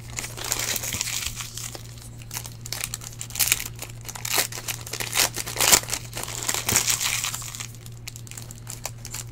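Foil card wrappers crinkle and rustle as they are torn open.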